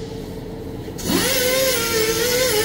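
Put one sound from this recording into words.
Compressed air hisses loudly from an air tool with a whining tone.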